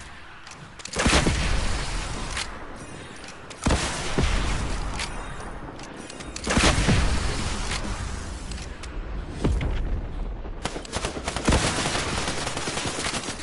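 Rocket explosions boom loudly.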